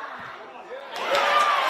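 Spectators cheer loudly outdoors.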